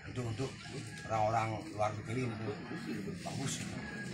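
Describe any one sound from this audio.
A man chants in a low voice close by.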